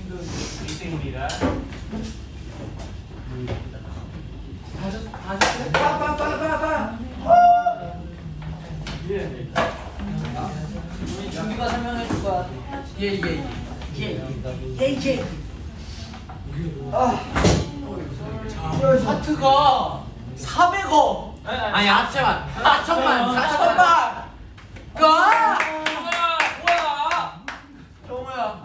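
Several young men talk and call out loudly over one another, close by.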